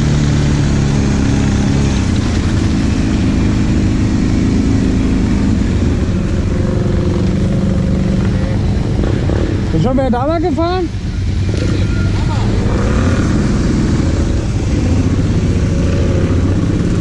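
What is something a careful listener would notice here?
Tyres splash through muddy water.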